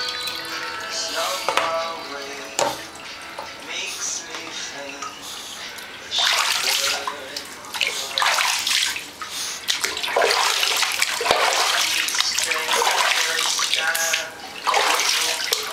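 A small dog whines and whimpers nearby.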